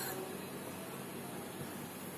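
Oil trickles softly into a metal pan.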